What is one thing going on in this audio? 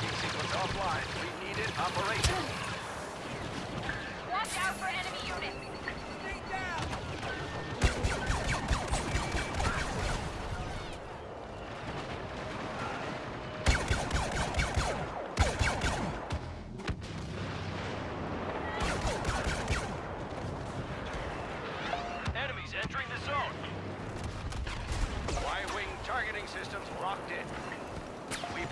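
A blaster rifle fires rapid bursts of shots.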